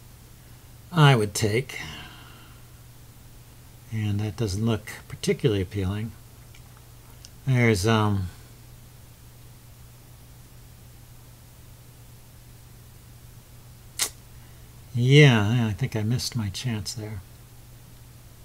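A man talks calmly into a microphone in short bursts.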